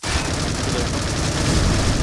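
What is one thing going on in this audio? A rifle fires a shot.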